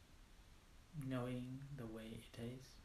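A man speaks calmly and slowly into a close microphone.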